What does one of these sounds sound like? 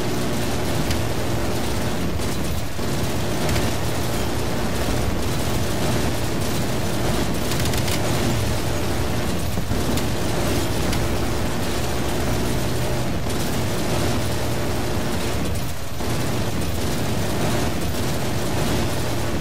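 A helicopter's rotor drones steadily.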